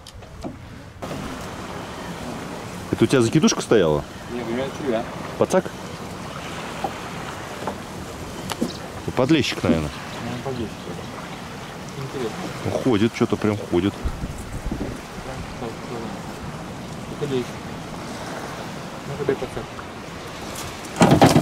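Small waves lap against a boat's hull.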